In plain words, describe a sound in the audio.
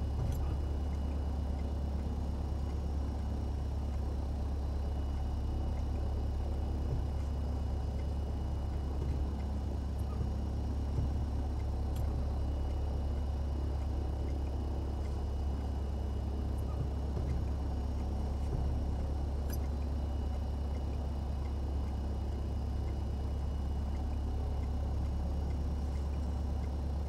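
A small plane's propeller engine drones steadily from inside the cockpit.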